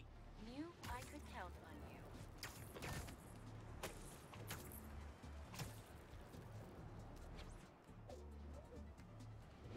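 Web-slinging thwips and whooshes of a game character swinging.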